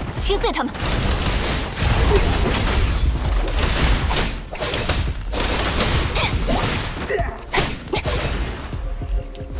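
Magical energy blasts crackle and whoosh in quick bursts.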